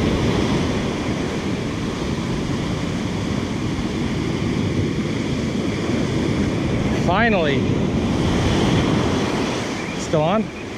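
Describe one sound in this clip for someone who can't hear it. Waves crash and wash up onto the shore.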